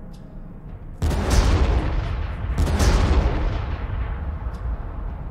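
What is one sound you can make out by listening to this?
Gunfire and explosions boom during a battle in a strategy game.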